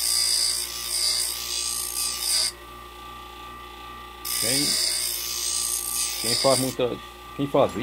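Metal grinds against a spinning grinding wheel with a harsh hiss.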